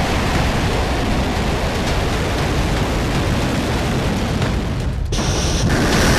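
A rocket engine roars loudly in a deep, continuous rumble.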